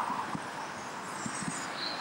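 A tram rolls past on rails.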